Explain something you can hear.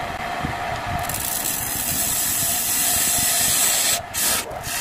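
A chisel scrapes against spinning wood with a rough hiss.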